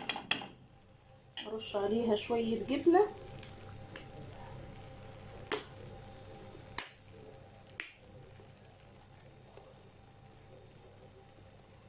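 A metal spoon stirs thick pasta with soft squelches.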